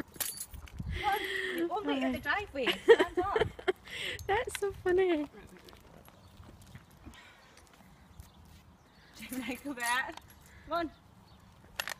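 A young woman talks and laughs nearby with animation.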